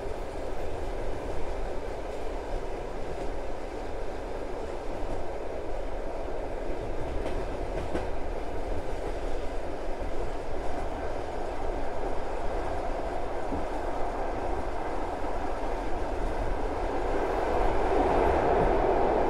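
A train rumbles steadily along the rails, growing louder as it crosses a bridge.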